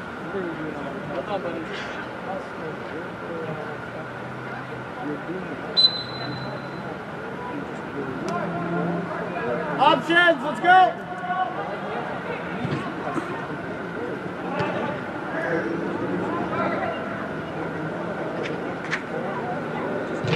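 Young men shout and call out across a large echoing indoor hall.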